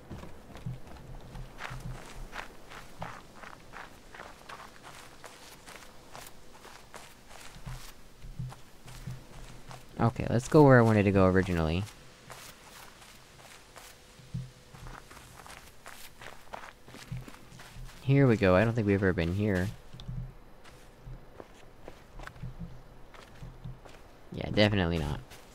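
Footsteps patter softly over grass and sand.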